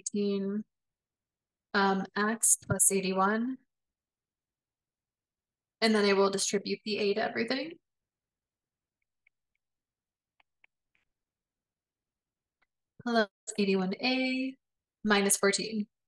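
A woman speaks calmly and clearly into a close microphone, in phrases with pauses.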